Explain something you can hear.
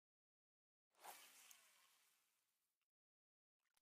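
A fishing line whizzes out as a rod is cast.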